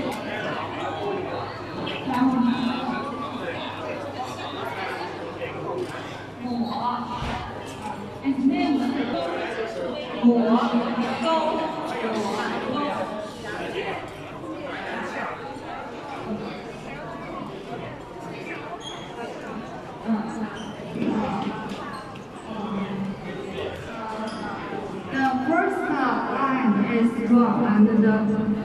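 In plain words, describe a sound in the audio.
Plucked zither strings ring out.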